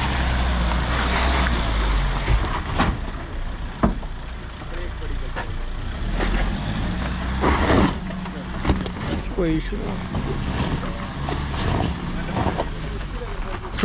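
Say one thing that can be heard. Tyres crunch over gravel and stones.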